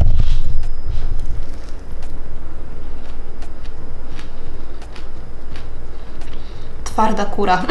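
A woman chews crunchy food close by.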